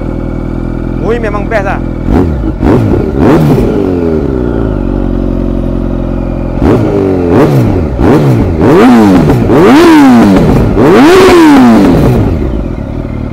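A motorcycle engine revs up loudly several times and falls back.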